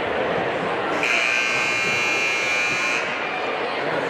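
A loud buzzer sounds for about two seconds.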